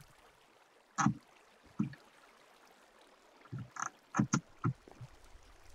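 Wooden blocks knock softly as they are placed one after another.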